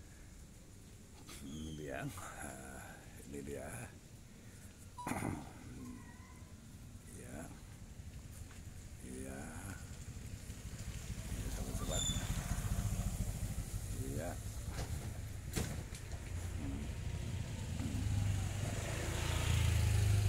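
A monkey chews and tears at a fruit.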